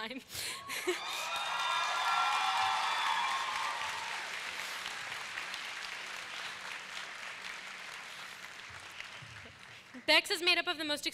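A large crowd applauds.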